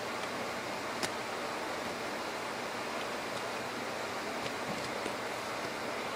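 Small plastic parts click and tap as they are handled up close.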